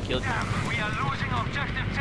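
An explosion bursts close by with a roar.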